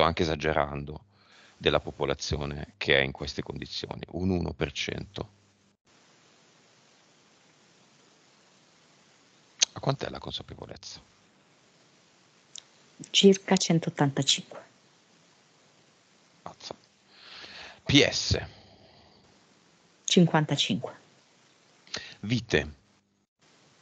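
A man speaks calmly and close to a headset microphone, in short bursts.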